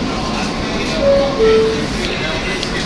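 Metal wheels squeal on the rails.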